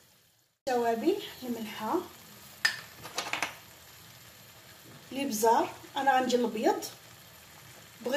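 Sauce bubbles softly in a pan.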